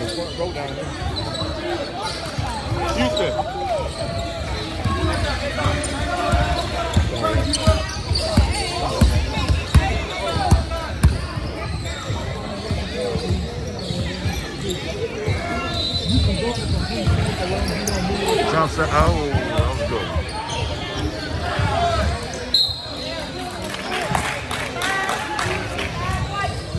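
A crowd of young people and adults chatters and calls out in the background.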